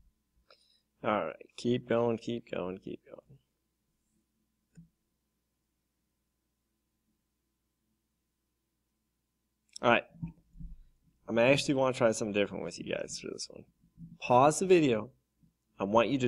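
A man speaks calmly and clearly, close to a microphone.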